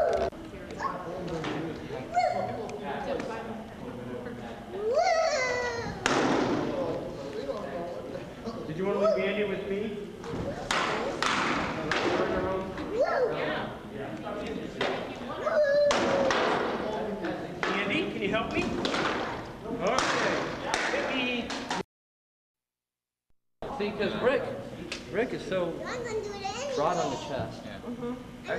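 Wooden swords clack against shields and each other in a large echoing hall.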